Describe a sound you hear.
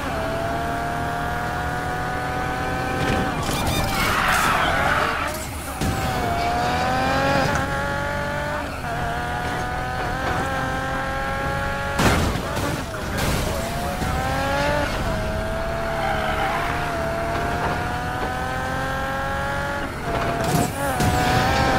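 A sports car engine roars at high revs, rising with each gear.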